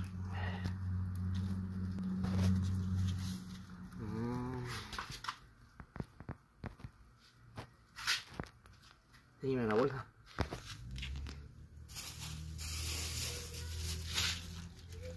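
Feathers tear and rustle as they are plucked by hand.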